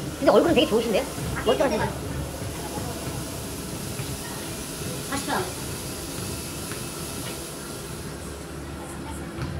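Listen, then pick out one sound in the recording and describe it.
Cold mist hisses steadily out of a tub.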